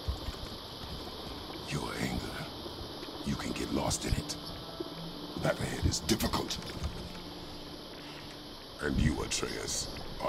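A man speaks in a deep, low voice.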